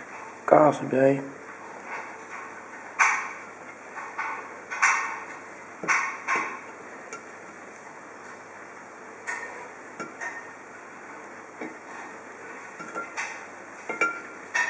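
Slices of cheese are laid down with soft taps.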